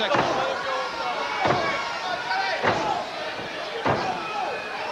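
Heavy blows land with sharp slaps and thuds.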